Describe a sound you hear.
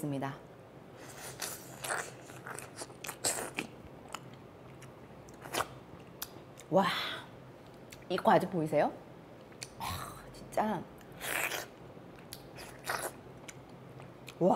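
A young woman slurps and chews juicy fruit noisily.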